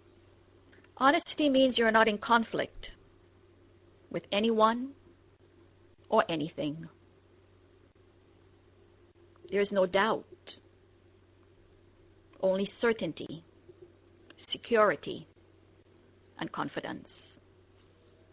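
A woman speaks in short phrases, close by.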